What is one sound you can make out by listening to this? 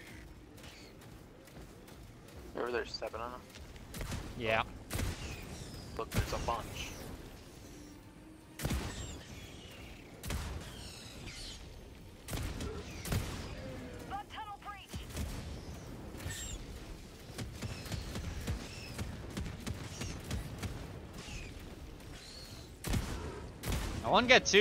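Gunfire clatters in rapid bursts.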